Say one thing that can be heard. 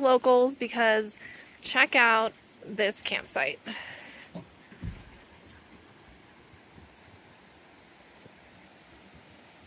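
A shallow stream ripples and flows over rocks.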